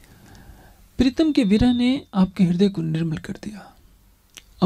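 An elderly man speaks calmly and close into a microphone.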